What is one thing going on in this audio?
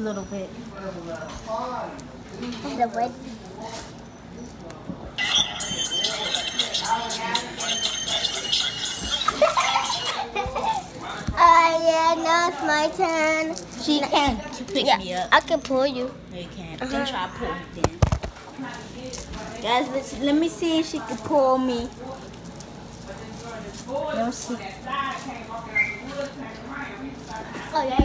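A young girl talks and sings close to a phone microphone.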